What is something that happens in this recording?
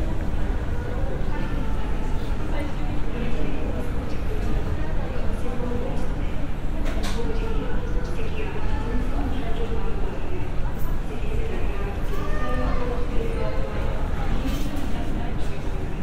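A jet engine roars steadily in the distance.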